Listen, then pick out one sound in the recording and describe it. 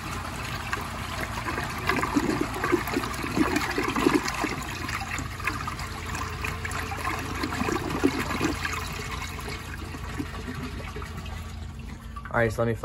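A toilet flushes with water rushing and gurgling down the drain.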